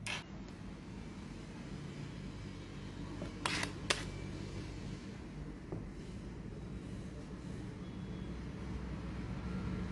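A metal spatula scrapes softly across frosting.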